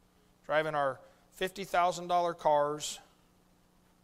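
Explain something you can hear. A middle-aged man speaks with emphasis through a microphone.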